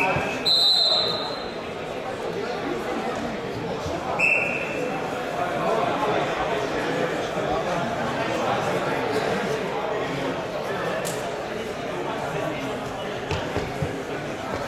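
Bare feet shuffle and thud on a wrestling mat.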